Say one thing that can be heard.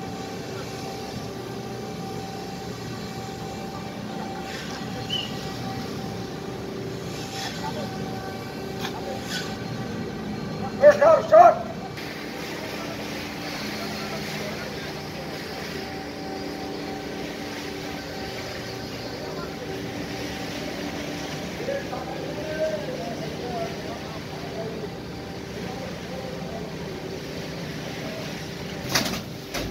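A crane's engine hums steadily throughout.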